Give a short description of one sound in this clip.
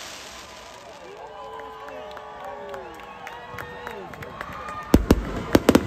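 Rockets whistle as they shoot up.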